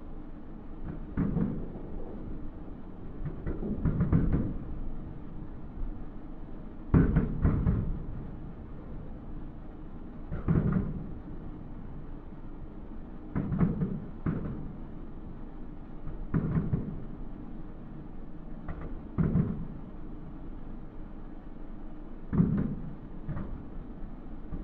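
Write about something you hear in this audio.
Fireworks burst with deep booms that roll and echo in the distance.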